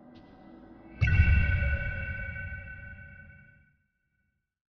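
A bright magical chime rings out and slowly fades.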